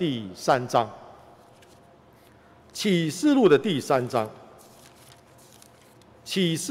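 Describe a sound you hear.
A middle-aged man reads out slowly and calmly into a microphone, with pauses.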